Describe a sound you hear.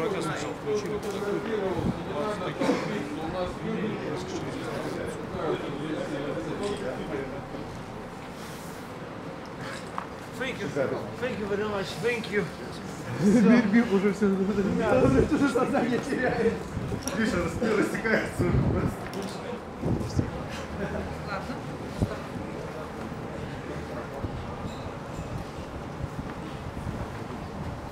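Men talk and chat close by, outdoors.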